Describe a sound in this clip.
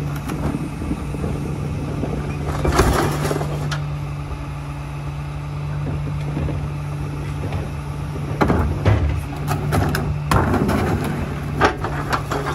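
A truck's lift arm whines and rattles as it tips a plastic bin.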